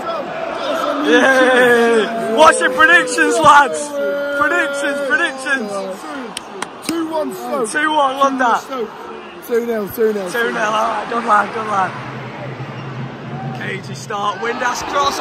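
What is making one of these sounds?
Young men shout and sing excitedly close by.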